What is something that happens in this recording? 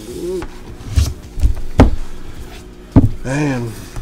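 Boxes thump down onto a table.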